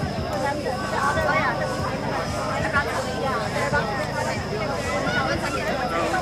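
A crowd of people chatters and calls out excitedly close by.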